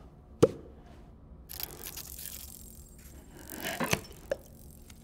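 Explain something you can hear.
A lid clinks against a glass jar.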